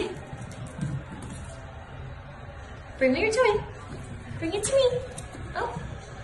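A puppy's paws patter on a wooden floor.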